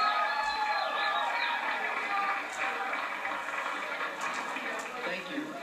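A rock band plays loudly through speakers in a room with heavy echo.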